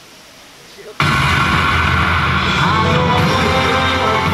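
Lively music plays loudly through an outdoor loudspeaker.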